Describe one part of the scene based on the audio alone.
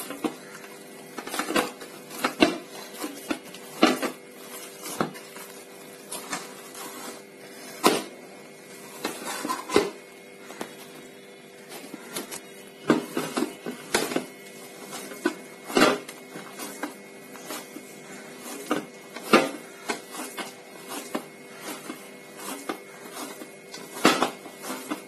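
Fingers tap and scrape against a metal bowl.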